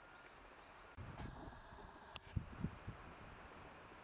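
Wind gusts outdoors and buffets the microphone.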